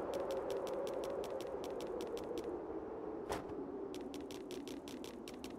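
Quick footsteps crunch on snow.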